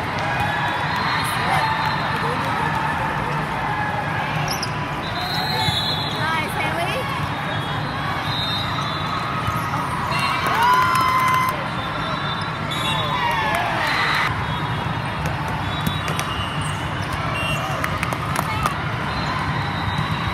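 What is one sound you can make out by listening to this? A volleyball thuds as players hit it.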